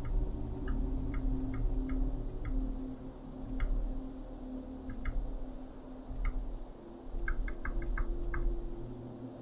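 Soft menu clicks tick several times in quick bursts.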